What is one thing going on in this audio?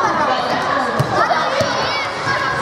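A ball thuds on the floor.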